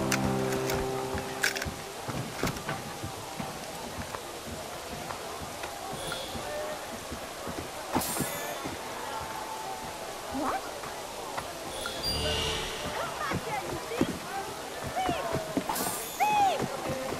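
Footsteps patter quickly on cobblestones.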